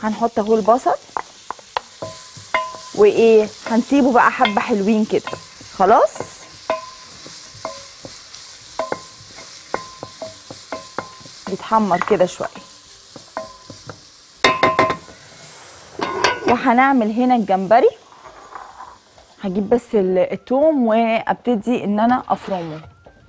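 A woman talks with animation into a microphone.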